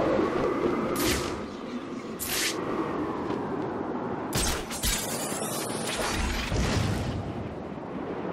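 A cape flaps and snaps in the wind.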